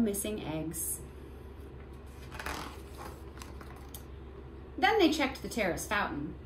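A woman reads aloud close by.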